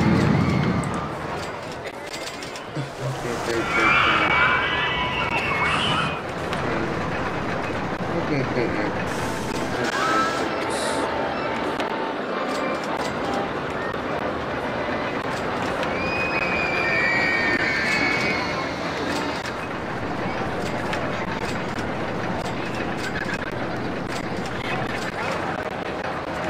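A roller coaster train rattles along its track.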